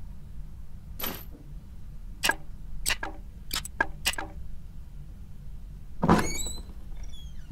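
Wooden boards knock and clatter as they are pried loose.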